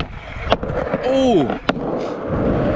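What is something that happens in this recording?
Skateboard wheels roll over rough pavement.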